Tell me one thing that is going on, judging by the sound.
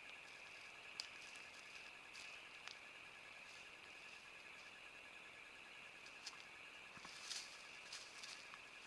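A large cat rustles and tugs at a carcass on dry leaves.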